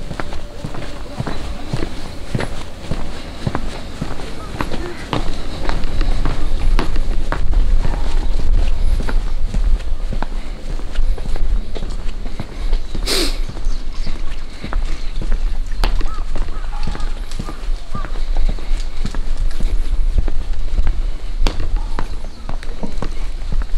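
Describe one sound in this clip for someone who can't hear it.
Footsteps tap steadily on a stone path.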